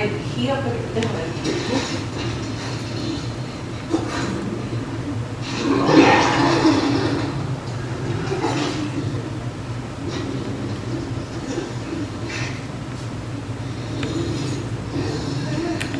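A young woman speaks softly close to a microphone.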